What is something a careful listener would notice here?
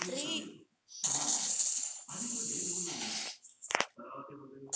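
A smoke grenade bursts and hisses.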